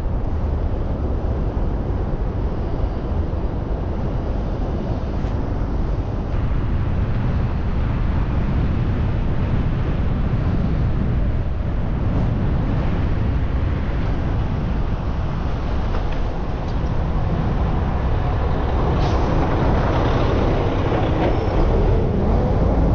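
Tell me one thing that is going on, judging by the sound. Traffic hums along a city street.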